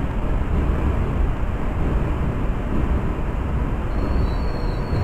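A subway train rumbles steadily along the tracks.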